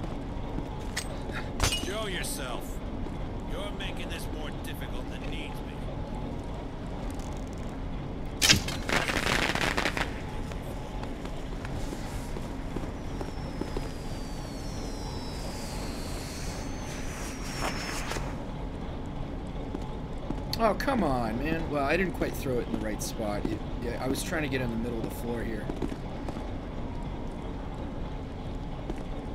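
Footsteps tread softly on a stone floor.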